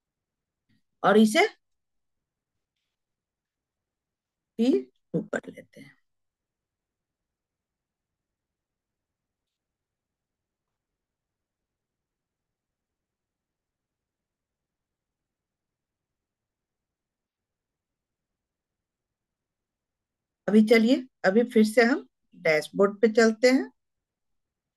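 A woman speaks calmly and close to a microphone, in short bursts.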